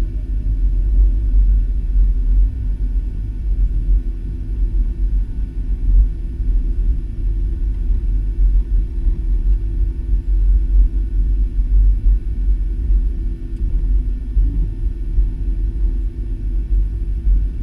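Jet engines rumble steadily from inside an airliner cabin as it taxis.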